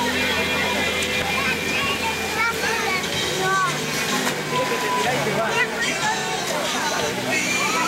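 Water gushes from a slide and pours into a pool.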